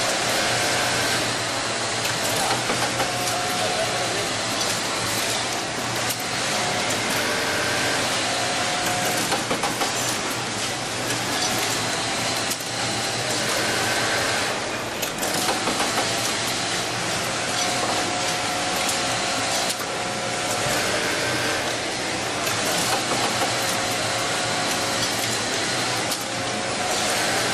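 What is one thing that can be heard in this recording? An automatic sewing machine hums and whirs steadily.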